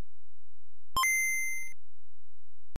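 A handheld game console plays a short, high startup chime.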